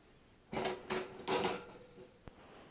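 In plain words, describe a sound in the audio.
A wire cage rattles as hands handle it.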